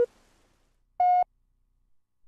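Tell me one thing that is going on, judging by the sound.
A longer, higher electronic beep sounds.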